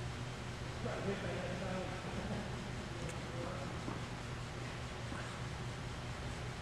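Sneakers scuff and squeak on a hard court floor in a large echoing hall.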